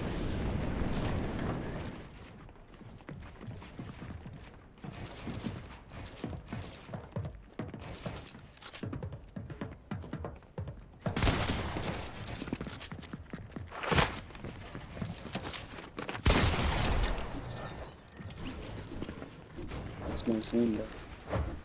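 Wooden and metal walls thump and clatter as they are built quickly.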